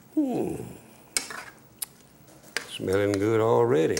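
A metal spoon scrapes and clinks in a pot.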